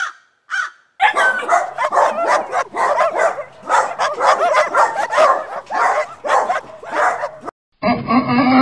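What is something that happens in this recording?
Puppies yelp and bark playfully.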